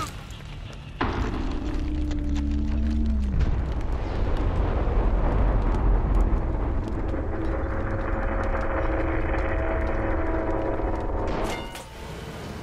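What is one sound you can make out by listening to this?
A deep, eerie rumble swells and roars.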